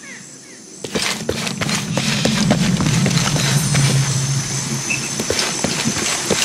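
Footsteps run on a dirt path.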